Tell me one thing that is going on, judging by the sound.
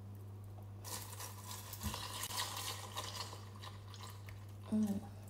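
Milk pours into a bowl.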